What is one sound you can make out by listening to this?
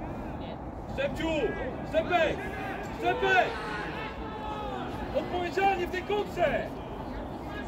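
Young men shout to each other across an open outdoor pitch.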